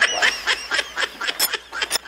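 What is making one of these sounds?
A woman laughs.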